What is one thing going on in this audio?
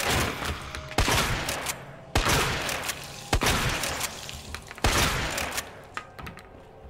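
Blows strike a body.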